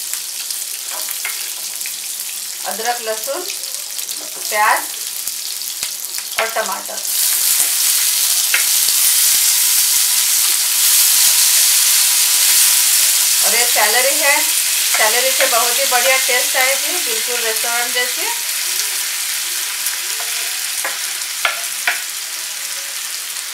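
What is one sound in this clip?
A spatula scrapes chopped food off a wooden board into a pan.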